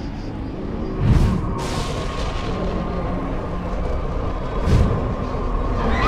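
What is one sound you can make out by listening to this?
A deep rumbling blast of magic booms.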